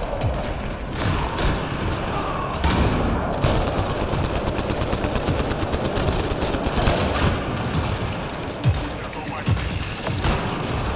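Energy blasts thump and crackle close by.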